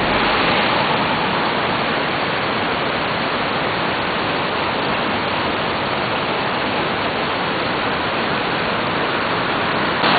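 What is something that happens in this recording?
Water trickles and splashes down a rocky slope.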